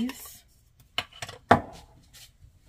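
A glass jar clinks down onto a hard counter.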